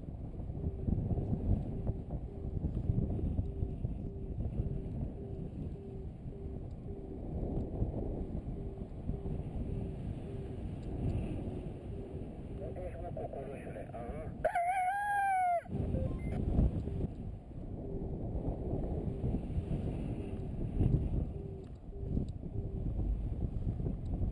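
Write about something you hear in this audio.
Wind rushes and buffets loudly past a paraglider in flight.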